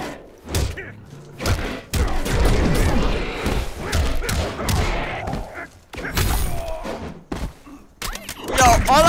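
Punches and kicks land with heavy thuds in a fighting game.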